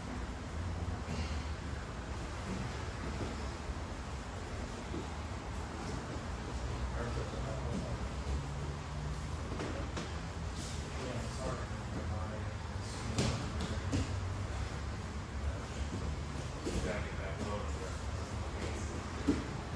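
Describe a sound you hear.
Bodies thump and shuffle on a padded mat in a large echoing hall.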